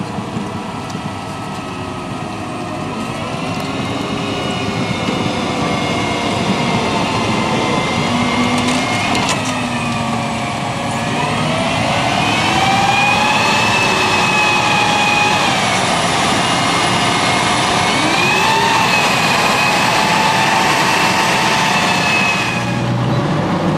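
A tank's turbine engine whines loudly, rising and falling in pitch.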